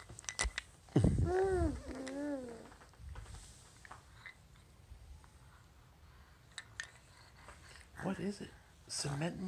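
A toddler babbles and coos close by.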